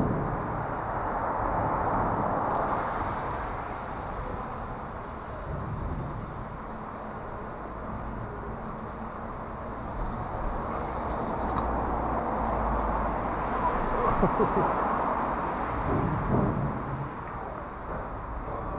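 Small plastic wheels roll and rattle over rough concrete.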